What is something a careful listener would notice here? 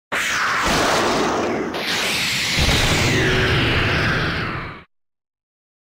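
A loud explosion booms and roars, then fades away.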